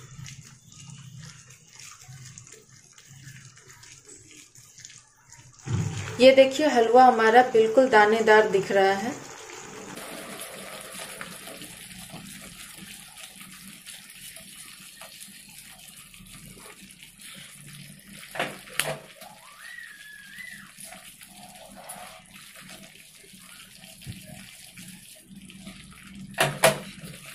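A spatula scrapes and stirs thick paste in a pan.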